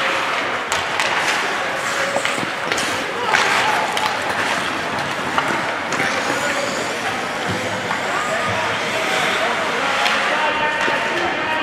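Skate blades scrape and hiss across the ice.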